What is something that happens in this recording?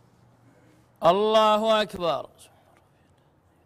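A man chants a short call in a loud, ringing voice.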